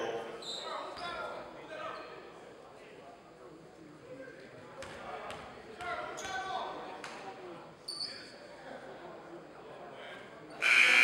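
Spectators chat and call out in an echoing gym.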